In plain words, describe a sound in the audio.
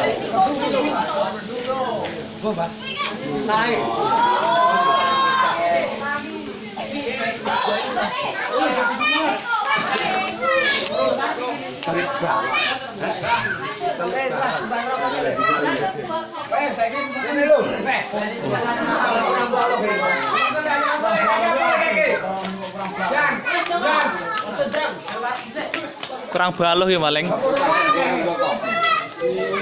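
A crowd of men and women talk and call out to one another outdoors.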